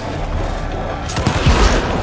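Gunshots bang in quick bursts.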